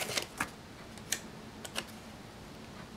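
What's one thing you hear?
A sticker peels off its backing sheet.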